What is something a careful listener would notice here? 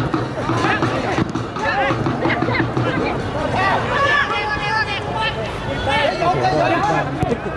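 A crowd in a large stadium cheers and shouts throughout.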